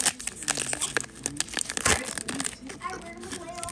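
A foil wrapper crinkles and tears as it is pulled open.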